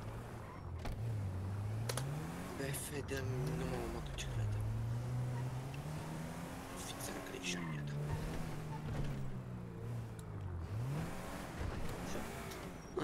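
A car engine revs up and down as the car drives.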